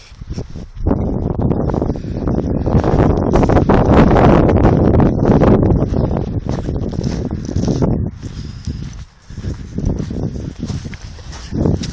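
A dog's paws crunch on pebbles.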